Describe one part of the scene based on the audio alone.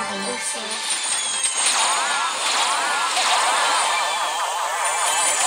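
Video game battle sound effects play with gliding electronic tones.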